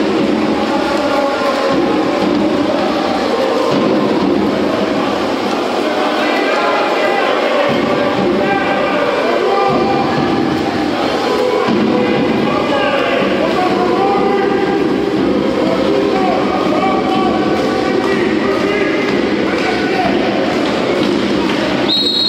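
Swimmers splash and kick through water.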